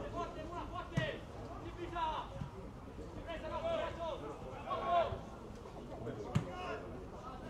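A football is kicked with a dull thump.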